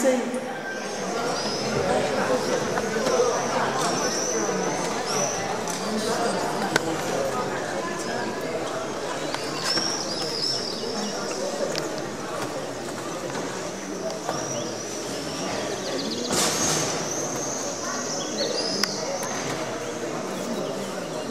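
A crowd of men and women chatters outdoors in a busy street.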